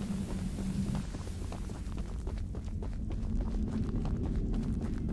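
Footsteps crunch slowly over dirt and gravel.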